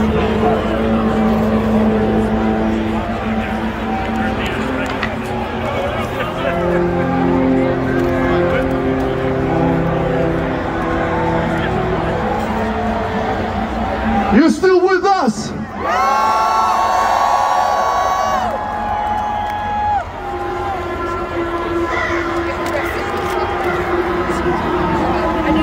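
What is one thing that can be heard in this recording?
Loud live music plays through large outdoor loudspeakers.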